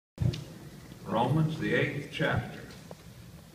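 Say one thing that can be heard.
An elderly man speaks calmly in a large hall.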